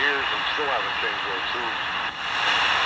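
A voice warbles faintly through a small radio speaker.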